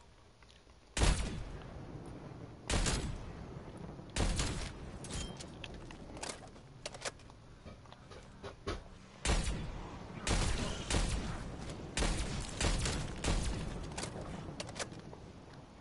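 Sniper rifle shots crack loudly, one after another, each followed by a short echo.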